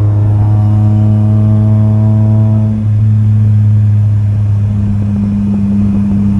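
Small electric fans whir steadily close by.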